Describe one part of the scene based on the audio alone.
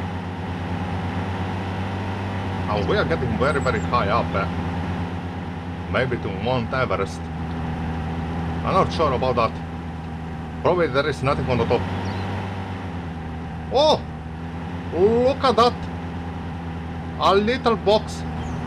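A pickup truck engine hums steadily as the truck drives along.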